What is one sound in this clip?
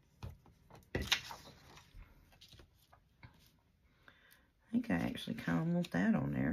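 Paper rustles as it is slid into place.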